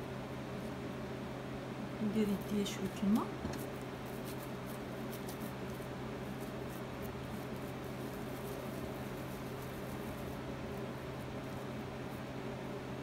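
Hands softly pat and roll sticky dough.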